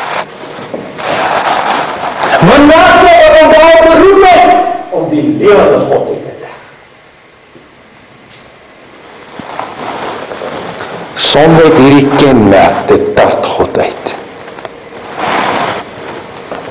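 A man speaks with animation into a microphone in a large echoing hall.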